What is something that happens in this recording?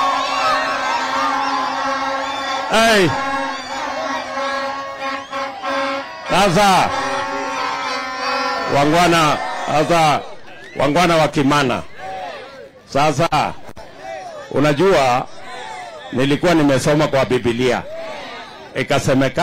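A large outdoor crowd cheers and chants loudly.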